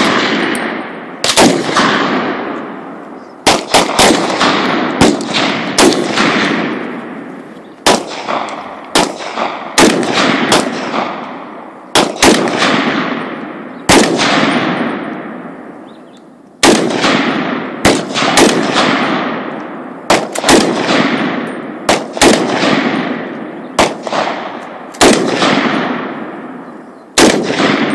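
A rifle fires loud single shots outdoors, each one echoing and rolling away.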